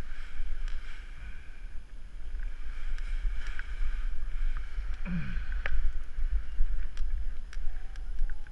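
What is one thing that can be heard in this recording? A paraglider wing flutters and rustles in the wind.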